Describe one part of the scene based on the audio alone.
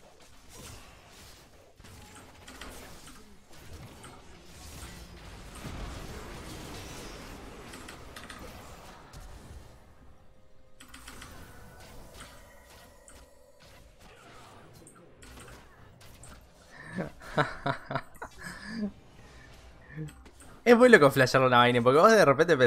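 Video game combat sound effects whoosh and burst.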